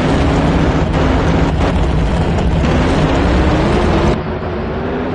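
Drag racing engines idle with a deep, rumbling roar.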